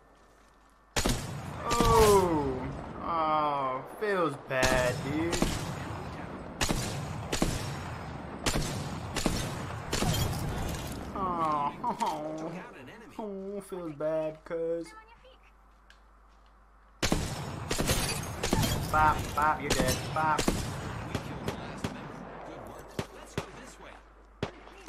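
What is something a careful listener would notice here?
Rapid gunshots crack in bursts.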